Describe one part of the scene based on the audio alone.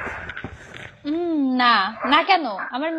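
A young woman speaks animatedly over an online call.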